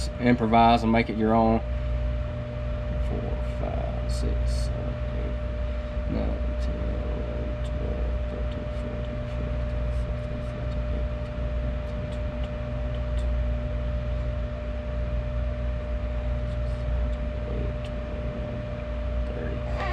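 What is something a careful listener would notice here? Liquid trickles from a bottle into a jug.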